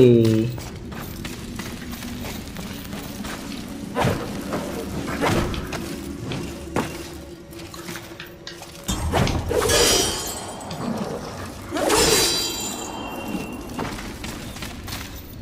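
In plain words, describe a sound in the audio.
Footsteps scrape and thud on rock.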